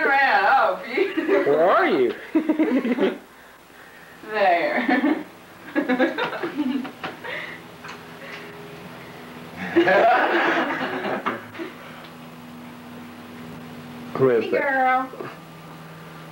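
A woman talks nearby in a high, playful voice.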